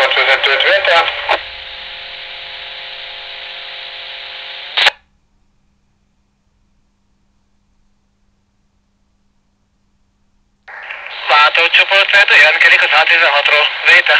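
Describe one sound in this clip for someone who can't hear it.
A voice talks through a small two-way radio speaker, thin and crackly.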